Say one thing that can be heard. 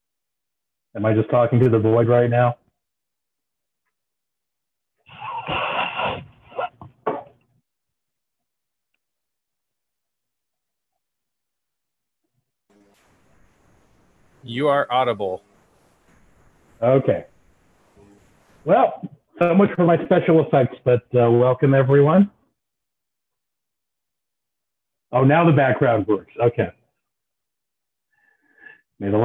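A middle-aged man talks with animation, heard through an online call.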